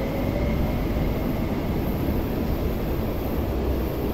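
A train rumbles away along the track.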